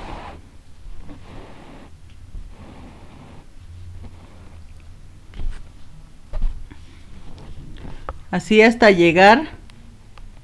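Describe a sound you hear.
Thread rasps softly as it is pulled through fabric.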